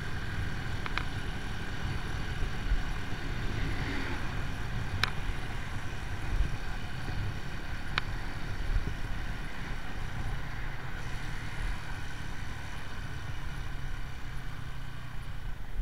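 A motorcycle engine rumbles steadily while riding along a road.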